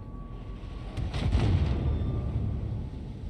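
Heavy guns fire with a deep, rolling boom.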